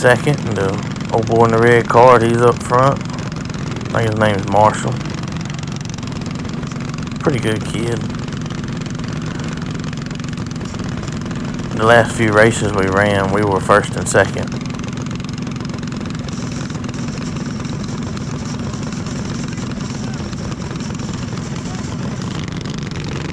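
A kart engine drones steadily up close.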